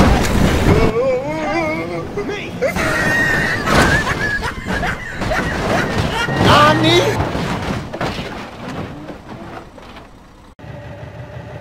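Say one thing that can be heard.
Wooden planks clatter and creak under a car's wheels.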